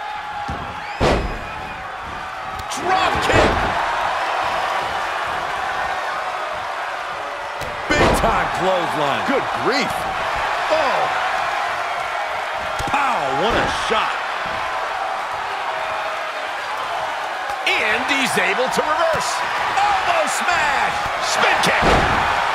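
Bodies slam hard onto a wrestling ring's mat with loud thuds.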